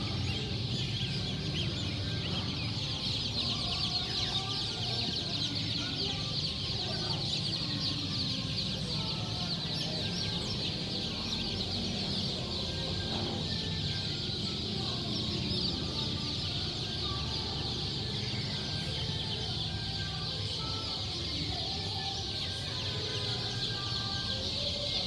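Hundreds of chicks peep loudly and constantly, close by.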